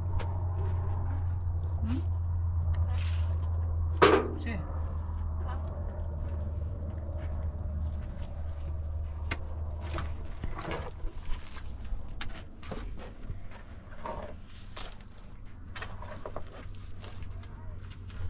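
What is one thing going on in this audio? A shovel scrapes through dry earth.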